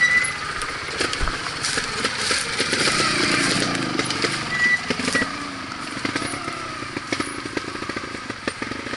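A motorbike engine revs and putters at low speed.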